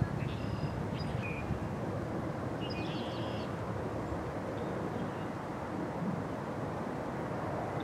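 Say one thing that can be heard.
A goose tears and nibbles at grass.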